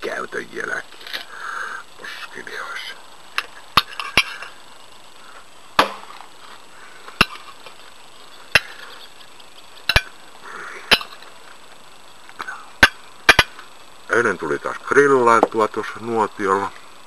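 An elderly man speaks calmly and close up, with pauses.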